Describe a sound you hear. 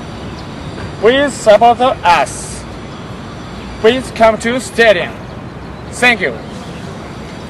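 A young man speaks with energy, close to the microphone.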